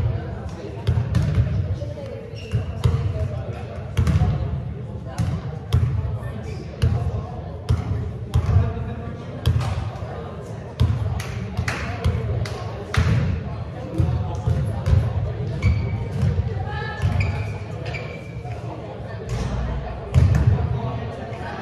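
Children shout and call out in the distance, echoing through a large hall.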